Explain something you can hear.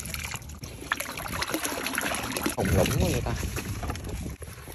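Water pours out and splashes into water.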